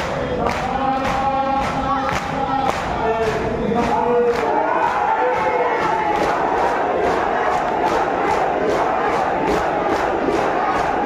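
Men beat their chests in a steady rhythm.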